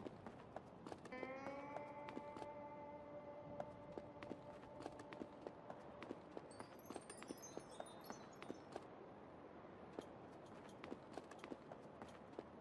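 Footsteps tap softly and steadily.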